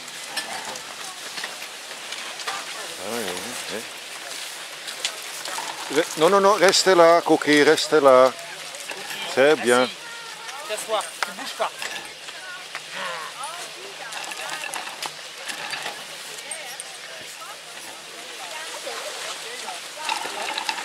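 A group of people chat quietly outdoors.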